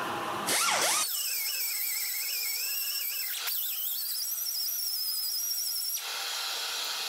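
A small power drill whines as it sands wood, its pitch wavering.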